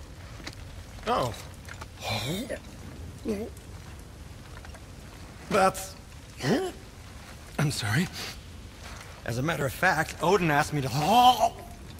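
A man talks with animation, in short bursts.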